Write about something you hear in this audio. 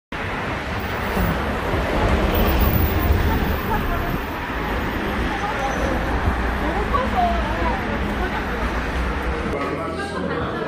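Street traffic hums in the background.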